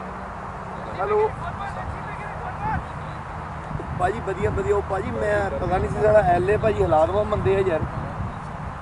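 Men call out to each other across an open field.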